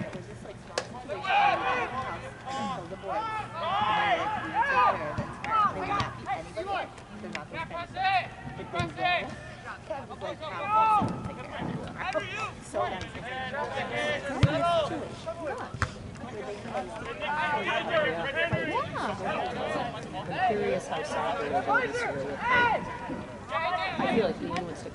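Young players shout and call to each other across an open field.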